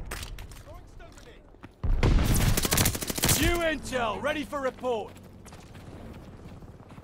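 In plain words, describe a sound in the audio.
Rapid gunfire rattles and cracks.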